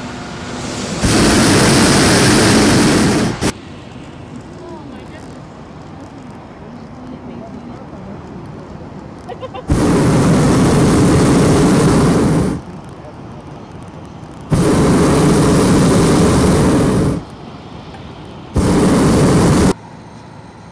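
A hot air balloon burner roars loudly in several long bursts.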